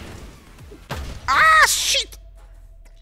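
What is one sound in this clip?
A robot bursts apart with a loud crash.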